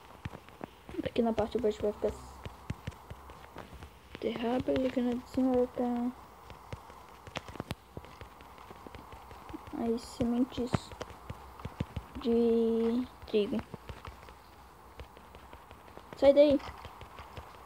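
A boy speaks close to a microphone in short, casual bursts.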